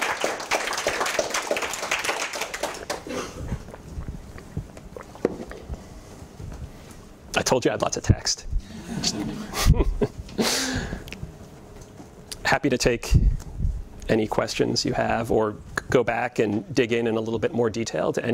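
A young man lectures to an audience in a room with a slight echo.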